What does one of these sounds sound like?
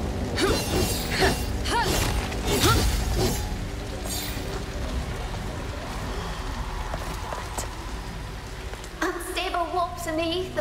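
A fire crackles and roars.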